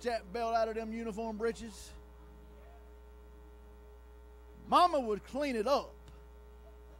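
An older man speaks with animation into a microphone, heard through loudspeakers in an echoing hall.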